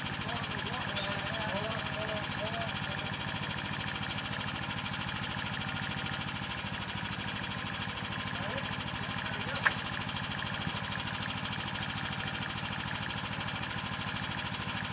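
A generator engine hums steadily nearby.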